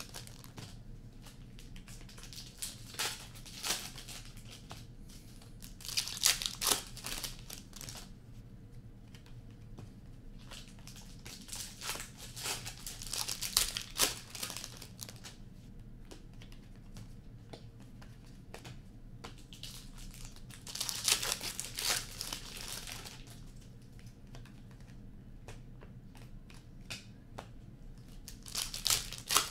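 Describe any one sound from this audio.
Trading cards shuffle and flick against each other close by.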